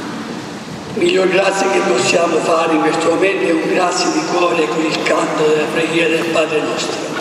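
An elderly man sings a chant through a microphone in a large echoing hall.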